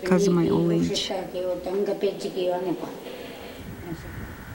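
An elderly woman speaks calmly and slowly.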